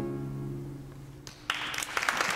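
A violin and a double bass play a slow tune in an echoing hall.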